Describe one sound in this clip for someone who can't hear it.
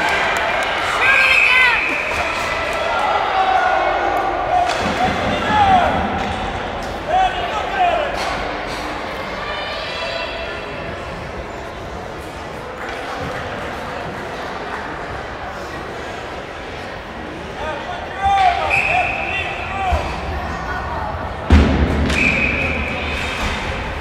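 A referee's whistle blows sharply in a large echoing arena.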